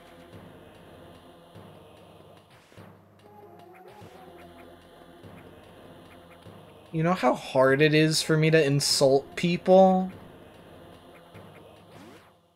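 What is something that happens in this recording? Electronic video game music plays steadily.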